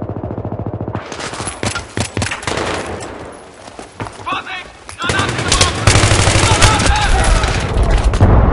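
Rapid gunshots crack and echo nearby.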